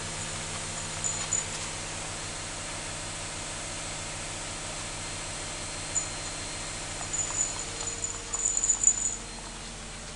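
A squeaky toy squeaks in short bursts.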